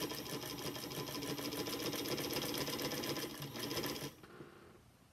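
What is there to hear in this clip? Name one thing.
A sewing machine runs fast with a steady whirr.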